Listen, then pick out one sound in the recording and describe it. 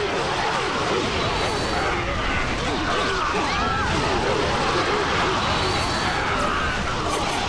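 Blades slash and clash rapidly in a chaotic battle.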